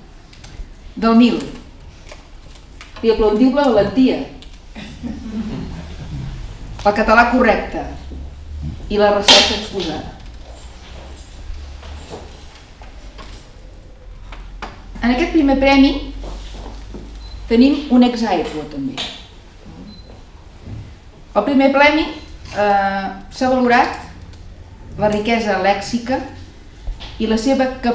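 A woman speaks calmly into a microphone over loudspeakers in an echoing hall.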